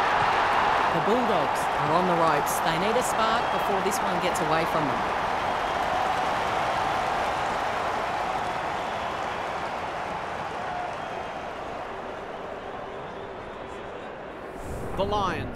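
A large crowd cheers and roars loudly, then slowly fades.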